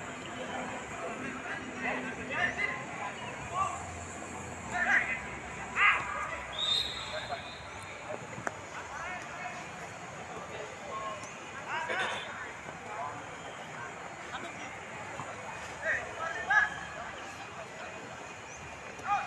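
Young players shout and call out across an open field outdoors.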